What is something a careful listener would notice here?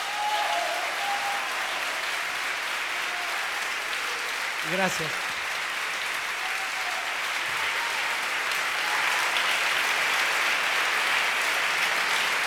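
A large audience claps and cheers in an echoing hall.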